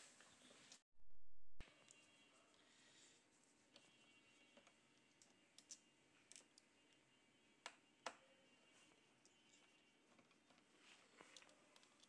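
A screwdriver clicks and scrapes against small screws.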